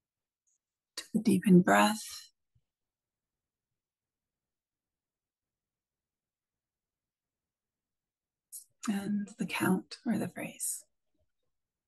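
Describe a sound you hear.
A woman speaks softly and calmly over an online call, with long pauses.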